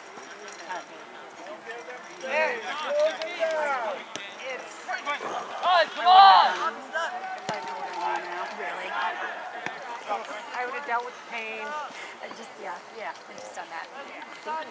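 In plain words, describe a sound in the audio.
Adult spectators nearby shout and cheer outdoors.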